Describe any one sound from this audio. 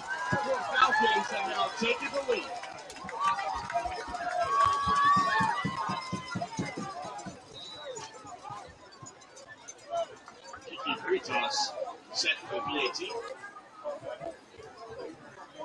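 Young men on the sideline shout and call out excitedly.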